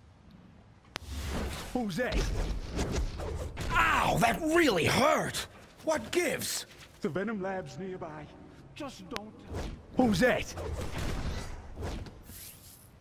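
Blows thud and crack in a fast brawl.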